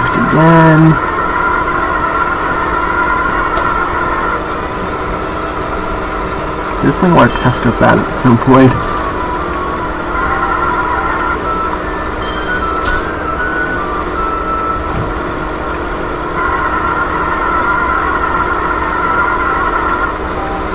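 A small kart engine hums steadily at high speed.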